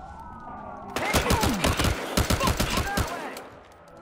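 Gunshots crack in quick, rapid bursts.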